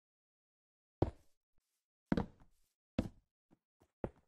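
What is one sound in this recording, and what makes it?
Wooden blocks crack and crumble as they break apart.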